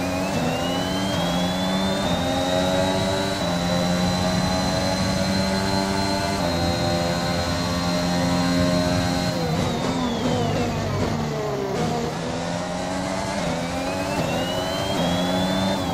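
A racing car engine screams, rising through the gears and dropping as it slows for a corner before revving up again.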